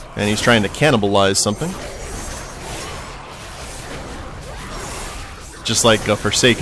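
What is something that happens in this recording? Weapons clash and spells burst in a fierce fight.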